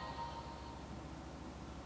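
A phone plays a short startup chime.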